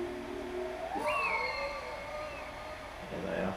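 An eagle screeches.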